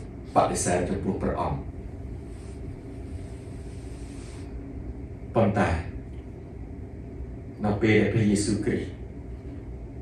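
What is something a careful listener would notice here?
A middle-aged man speaks calmly and close by, in short phrases with pauses.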